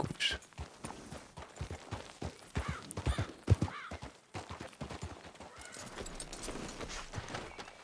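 Hooves thud on a dirt path.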